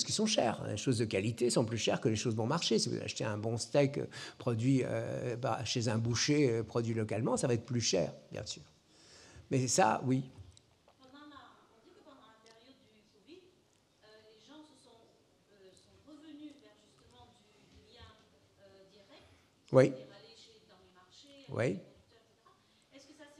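An elderly man speaks calmly into a microphone, heard through loudspeakers in a large hall.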